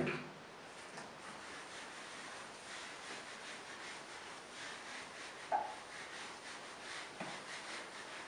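A board eraser rubs softly across a whiteboard.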